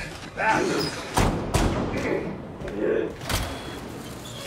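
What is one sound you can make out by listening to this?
A van door slams shut.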